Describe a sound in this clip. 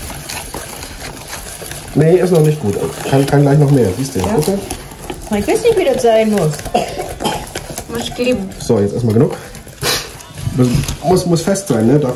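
A whisk scrapes and clinks against a ceramic bowl while mixing.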